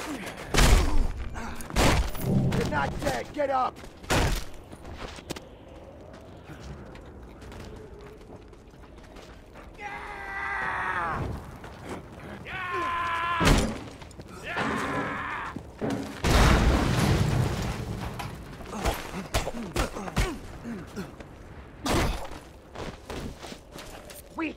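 Punches and blows land with heavy thuds.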